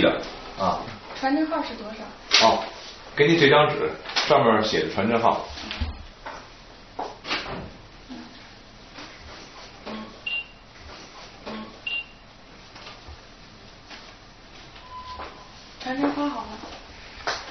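A young woman speaks calmly and clearly up close.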